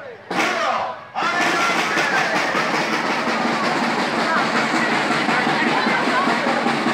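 A crowd of people cheers and shouts loudly outdoors.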